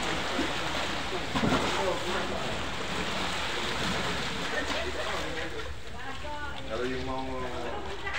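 Water splashes against a concrete dock.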